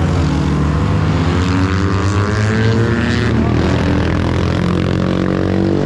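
A car engine drones and rises in pitch as a vehicle drives past.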